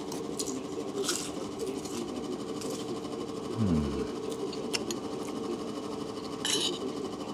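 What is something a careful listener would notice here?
A spoon clinks and scrapes against a plate.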